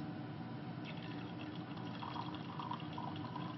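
Liquid trickles softly as it is poured into a glass beaker.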